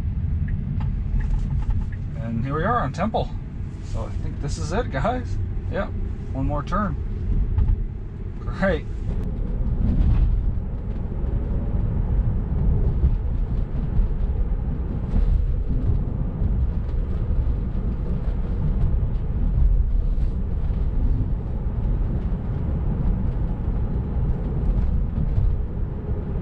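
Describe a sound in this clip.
A car's tyres rumble steadily on the road from inside the cabin.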